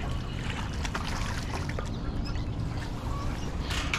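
A fishing reel whirs as line is wound in.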